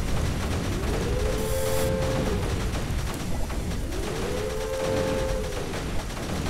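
Explosions rumble and crackle in a video game.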